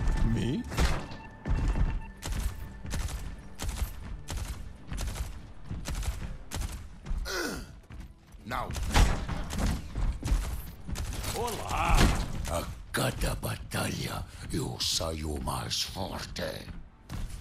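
Heavy footsteps clank on a wooden floor.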